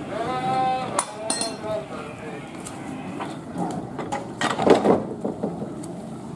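A metal switch lever clanks.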